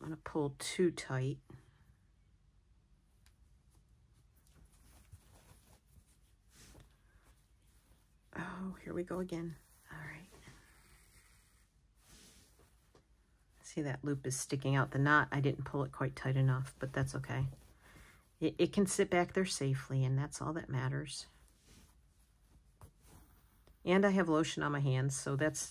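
Thread softly rasps as it is drawn through cloth.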